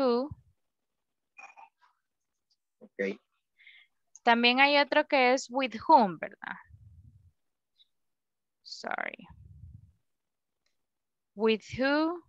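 A young woman speaks clearly and calmly through a microphone on an online call, with pauses.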